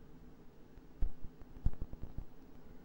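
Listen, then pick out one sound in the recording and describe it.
A bat hits a ball with a sharp crack.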